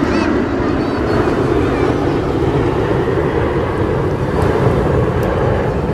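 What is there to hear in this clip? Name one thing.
Jet engines roar overhead in a steady, loud rumble.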